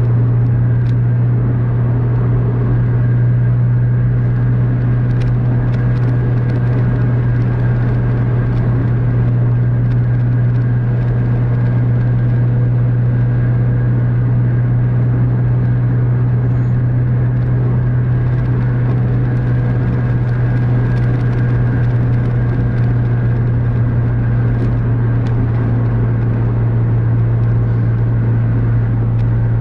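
Tyres roar steadily on a smooth highway.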